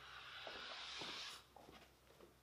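Chalk scratches and taps on a blackboard.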